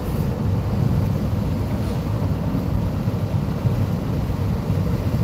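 A car drives fast along a road, its engine and tyres rumbling steadily from inside.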